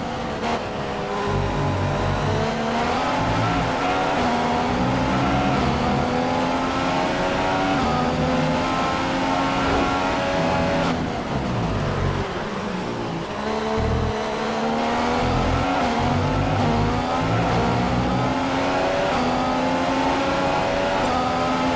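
A Formula One car engine screams, rising in pitch through the gears with short dips at each upshift.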